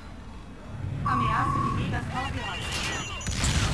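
Laser guns fire in quick bursts.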